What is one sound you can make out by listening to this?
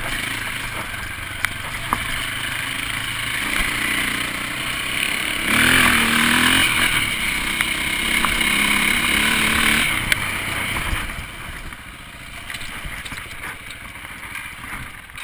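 A dirt bike engine revs and hums close by, rising and falling in pitch.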